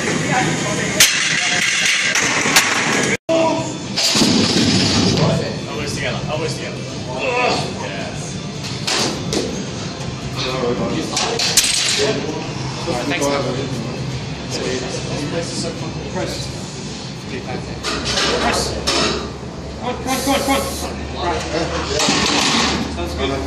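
A loaded barbell clanks into a metal rack.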